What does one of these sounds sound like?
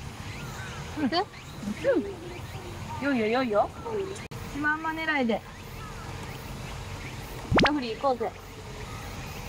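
Another young woman speaks with animation nearby.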